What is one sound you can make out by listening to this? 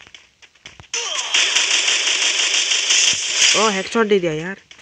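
Rapid gunfire rattles in a burst.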